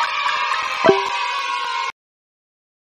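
A cheerful game victory jingle plays with sparkling chimes.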